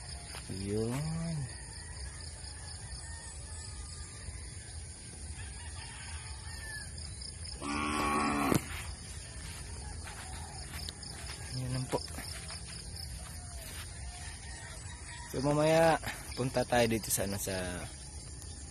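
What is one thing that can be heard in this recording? A young man speaks close up in short bursts, calmly.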